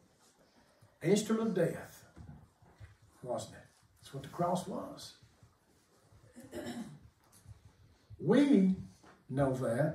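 An older man speaks calmly through a microphone in a large room, pausing often.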